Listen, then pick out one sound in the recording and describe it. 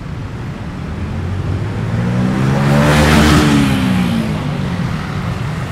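A motor vehicle roars past close by and fades away.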